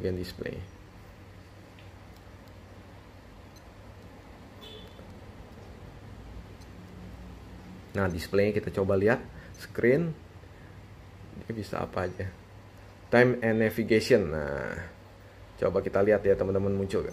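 Small buttons on a wristwatch click as they are pressed.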